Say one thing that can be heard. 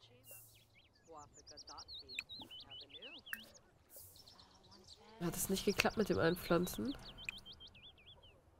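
A young woman talks casually into a nearby microphone.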